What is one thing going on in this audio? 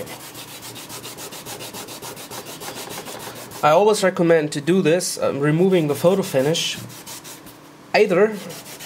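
A cloth rubs briskly on a board.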